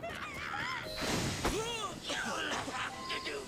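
A smoke bomb bursts with a loud whoosh.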